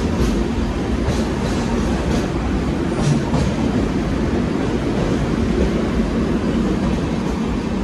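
A train rumbles loudly through a tunnel.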